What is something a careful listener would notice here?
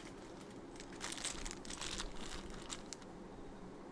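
Cardboard packaging rustles and scrapes as it is handled.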